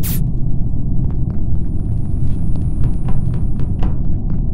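Soft footsteps tap steadily.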